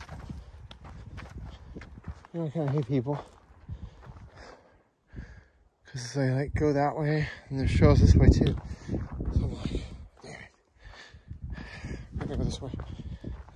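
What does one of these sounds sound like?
Footsteps crunch on dry, gravelly dirt.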